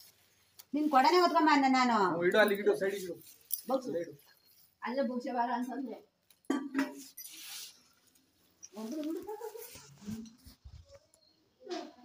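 Women talk loudly and with animation close by.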